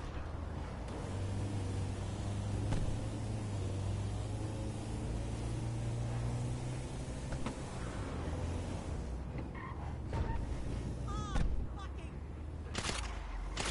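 A van engine hums steadily as it drives along.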